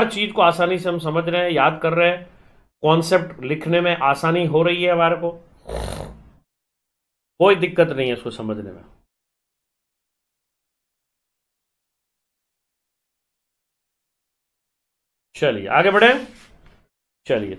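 A middle-aged man speaks with animation into a close microphone, pausing between phrases.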